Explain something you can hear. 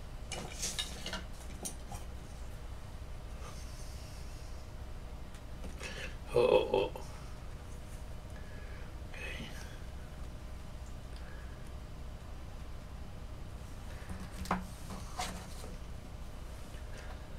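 Light knocks and rustles come as a clay sculpture is handled and turned on its stand.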